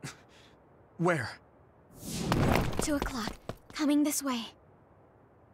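A young man speaks animatedly into a microphone.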